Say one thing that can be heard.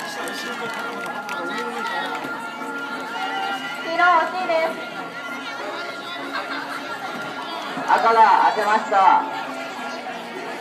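A crowd of children cheers and shouts in the distance outdoors.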